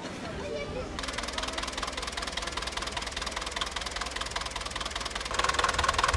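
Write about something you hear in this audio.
A tractor engine idles with a steady chugging.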